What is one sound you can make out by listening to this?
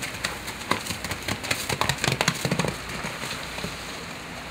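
A horse's hooves thud and splash through wet mud.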